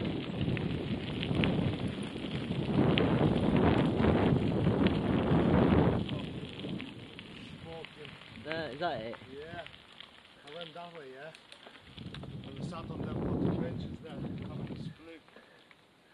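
Wind rushes loudly over the microphone, outdoors.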